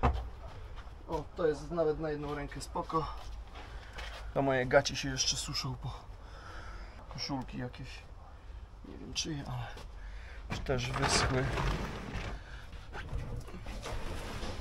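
Items knock and rustle as they are loaded into a van.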